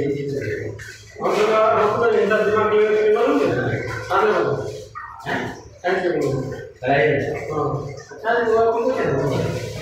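A man sings loudly and with feeling, close by, in an echoing tiled room.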